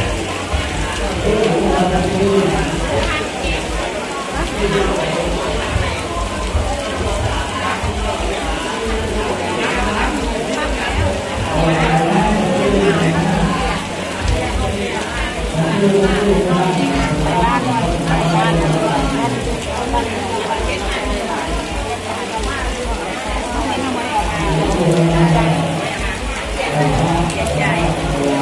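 A man chants steadily into a microphone, heard through a loudspeaker in an echoing room.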